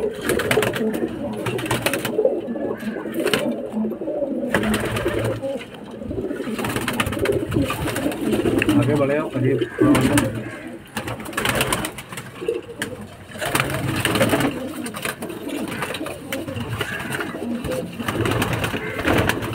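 Pigeon wings flap and clatter as birds take off.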